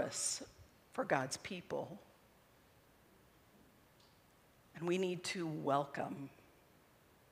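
A middle-aged woman speaks calmly into a microphone in a large room.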